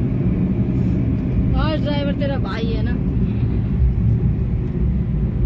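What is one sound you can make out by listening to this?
A car's tyres rumble steadily on the road from inside the car.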